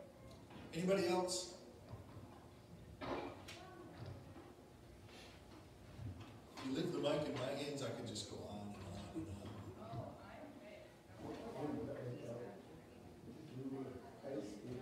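A man speaks calmly through a microphone in a large room with a slight echo.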